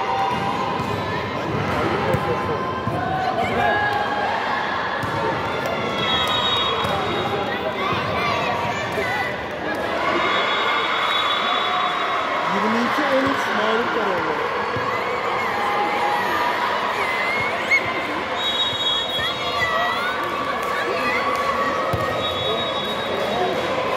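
A volleyball is struck and thuds.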